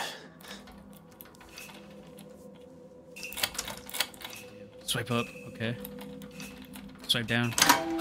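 A doorknob rattles and clicks.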